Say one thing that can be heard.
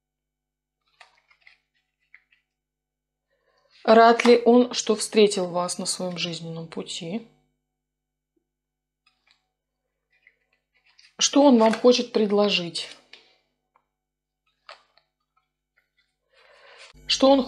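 Playing cards rustle softly as they are shuffled by hand.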